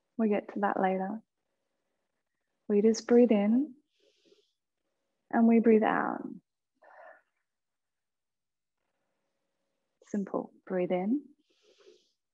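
A woman speaks calmly and slowly into a close microphone, with long pauses.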